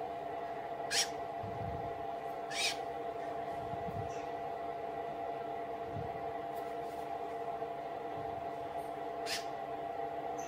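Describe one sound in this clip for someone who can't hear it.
A cotton swab dabs softly against skin.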